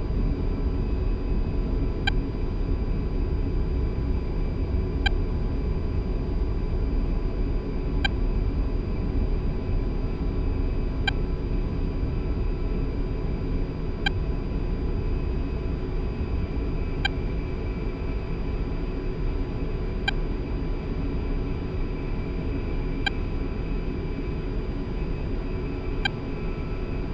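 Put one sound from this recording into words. A jet engine rumbles and whines steadily.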